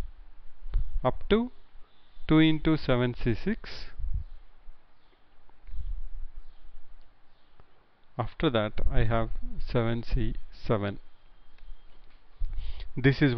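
A man explains calmly through a microphone, with pauses.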